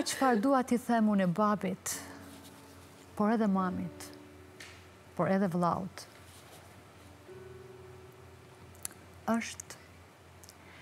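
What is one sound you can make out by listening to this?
A middle-aged woman speaks with animation into a microphone, in short bursts.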